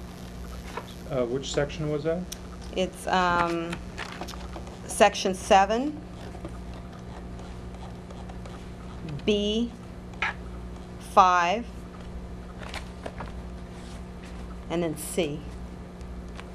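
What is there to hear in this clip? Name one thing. A woman speaks calmly into a microphone in short phrases.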